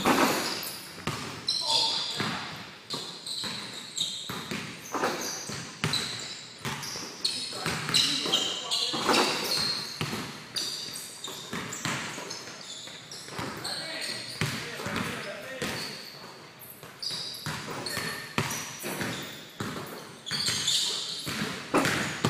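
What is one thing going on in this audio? A basketball bounces on a wooden floor, echoing through a large hall.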